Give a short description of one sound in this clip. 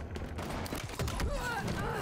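A plasma blast bursts close by.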